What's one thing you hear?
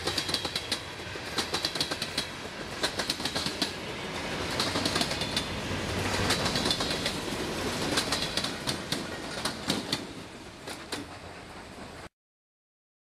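A freight train rumbles past close by, its wheels clacking rhythmically over the rail joints.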